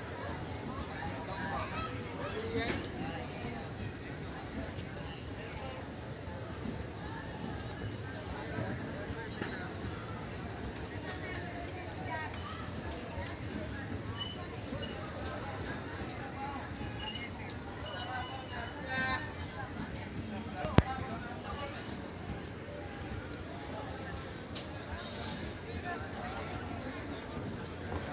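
A passenger train rolls steadily past with a rumble and clatter of wheels on rails.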